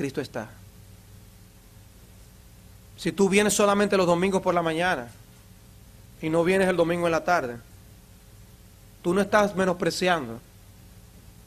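A middle-aged man speaks with animation through a microphone, pausing between phrases.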